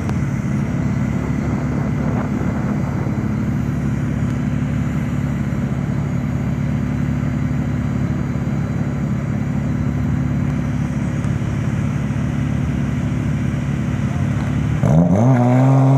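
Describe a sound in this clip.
A car engine idles with a loud, rumbling burble.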